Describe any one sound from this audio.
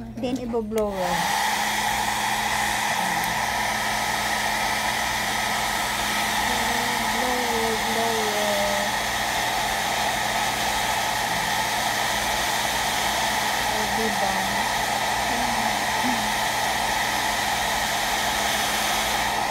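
A hair dryer blows with a loud, steady whoosh.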